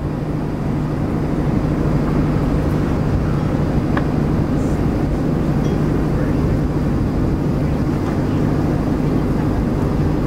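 Wind blows past outdoors.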